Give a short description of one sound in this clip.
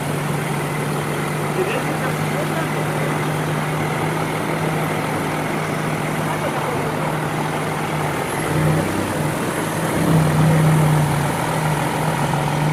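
A car engine hums steadily as the car rolls slowly closer.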